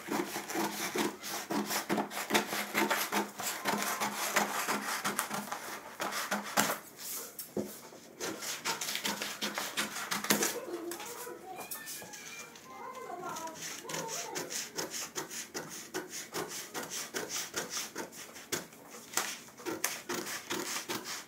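Scissors snip through heavy cloth in quick repeated cuts.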